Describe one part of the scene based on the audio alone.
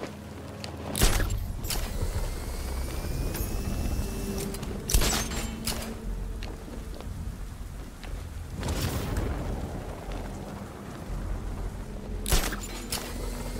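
A grapple line fires with a sharp whoosh.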